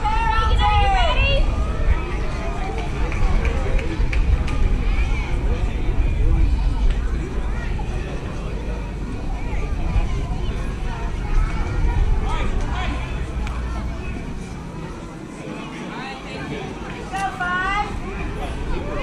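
Young players and onlookers call out from a distance across an open field.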